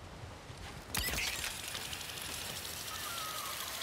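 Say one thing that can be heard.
A zipline pulley whirs along a cable.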